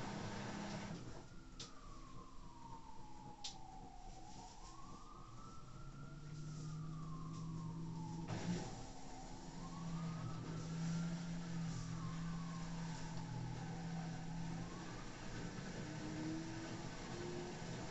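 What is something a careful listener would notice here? A washing machine motor whines, rising and falling in pitch.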